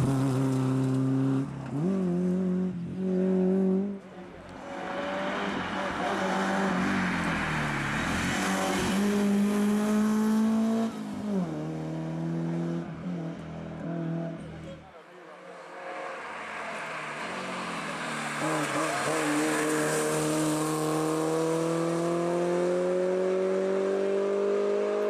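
A rally car engine roars loudly, revving up and down through the gears.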